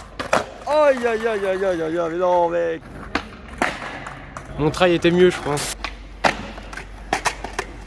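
A skateboard tail snaps against pavement with sharp clacks.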